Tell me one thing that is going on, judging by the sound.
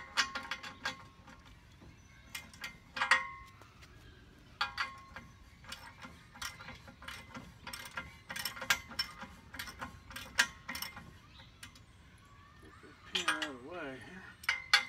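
Metal tools click and clink sharply against metal.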